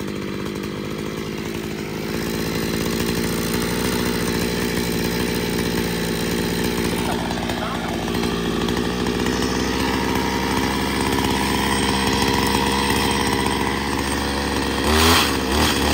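A chainsaw engine runs at a steady idle close by.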